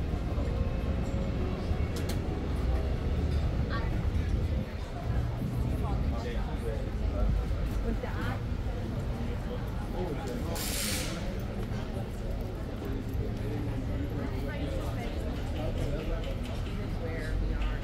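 A crowd of men and women chatters outdoors.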